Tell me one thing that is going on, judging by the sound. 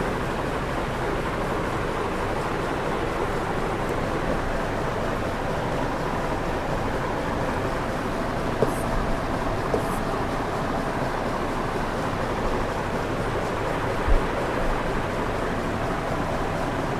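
A man speaks calmly, explaining at a steady pace.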